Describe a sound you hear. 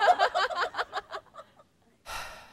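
A woman laughs loudly close by.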